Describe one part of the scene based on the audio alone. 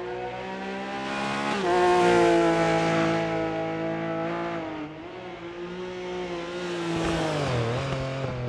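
Tyres crunch and spray over loose gravel.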